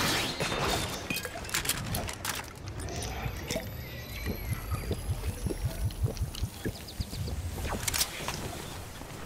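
Quick footsteps patter on dry ground.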